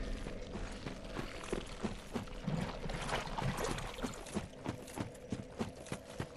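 Armoured footsteps thud and clink quickly on stone.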